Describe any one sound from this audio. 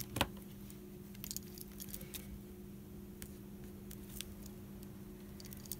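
A paint tube is squeezed and tapped against paper.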